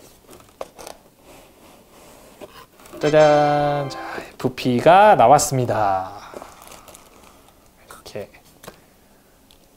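Cardboard boxes slide and rub as hands open them.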